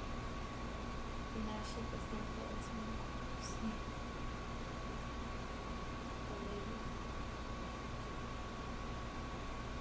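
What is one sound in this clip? Small plastic objects click in a woman's hands.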